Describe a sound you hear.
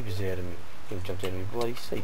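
A blade strikes stone with short dull knocks.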